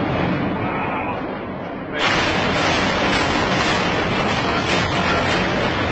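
Heavy rain lashes down.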